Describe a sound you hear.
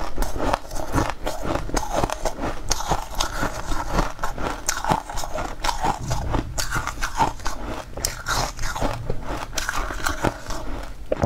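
A young woman crunches and chews crisp, crumbly food close to a microphone.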